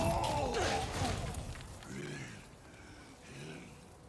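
Electricity crackles and sizzles in sharp bursts.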